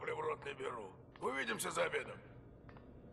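An elderly man speaks gruffly, close by.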